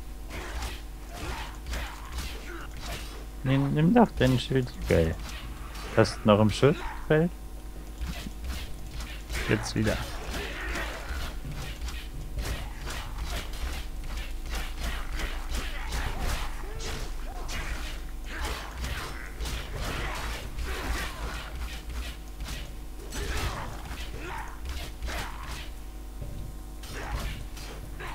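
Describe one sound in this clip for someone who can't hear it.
Metal blades clash and strike again and again.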